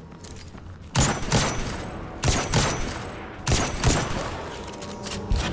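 Rifle shots fire in heavy, booming bursts.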